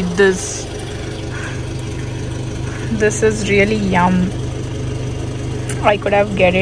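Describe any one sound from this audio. A car engine hums steadily at idle.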